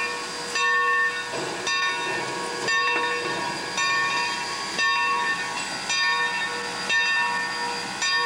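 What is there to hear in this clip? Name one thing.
Steam hisses from a locomotive.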